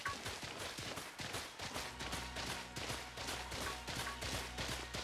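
Quick footsteps run across soft grass.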